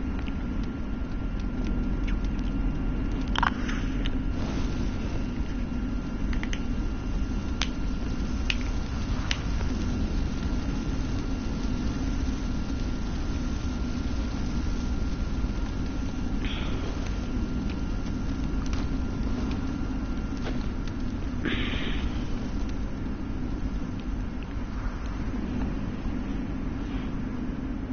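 A fire crackles and pops.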